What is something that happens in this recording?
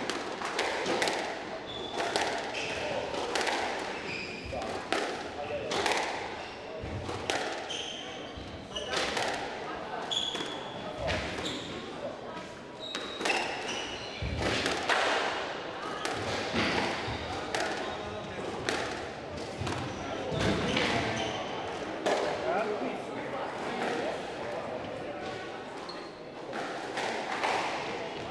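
Players' feet thud and shuffle on a wooden floor.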